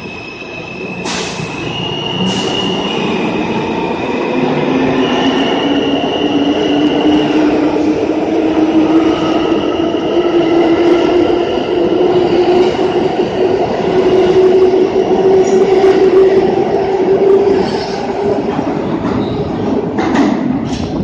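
Steel train wheels rumble and clatter over the rails, growing louder.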